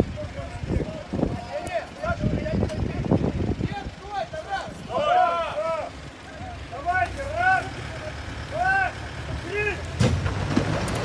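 Several men talk and call out outdoors.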